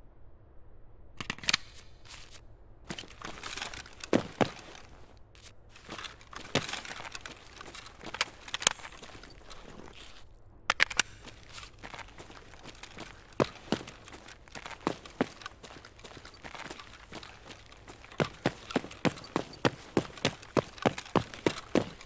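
Footsteps thud rhythmically on a hard floor.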